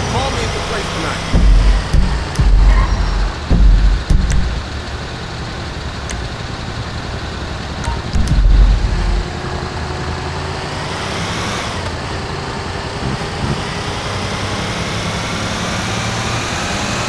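A heavy truck engine rumbles steadily as the truck drives along.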